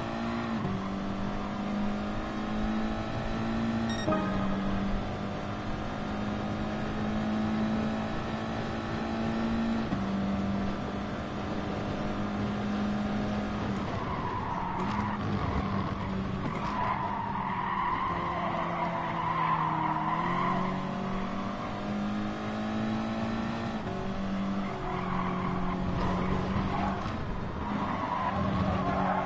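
A racing car engine revs hard and climbs through the gears.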